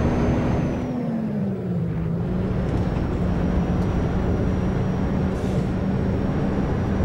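A bus engine hums steadily and its pitch drops slightly as it slows.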